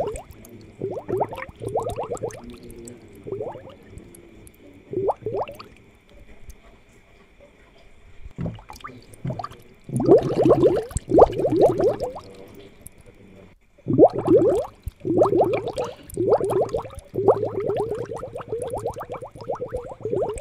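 Air bubbles gurgle steadily in water.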